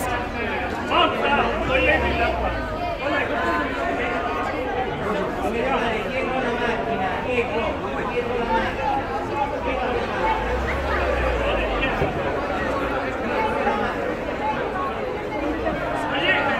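A large crowd of men and women talks and calls out outdoors nearby.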